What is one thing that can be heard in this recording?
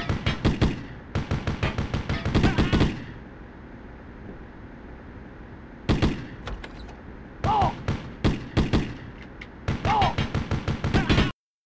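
An automatic rifle fires in rapid bursts of shots.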